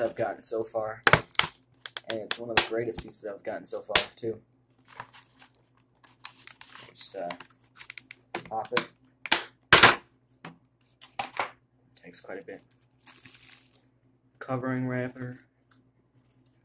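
Plastic packaging crinkles and clicks as hands open it.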